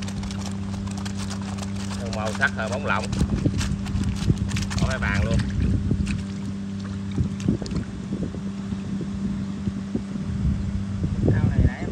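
Shrimp flick and snap wetly against a net.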